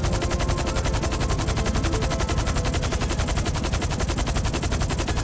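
A large tandem-rotor cargo helicopter flies overhead, its rotor blades chopping fast.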